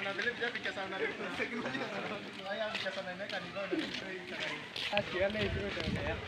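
Several men and women chatter and call out outdoors, near and far.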